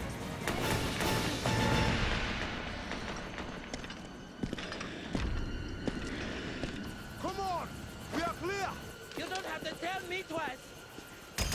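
A man speaks tensely and urgently, close by.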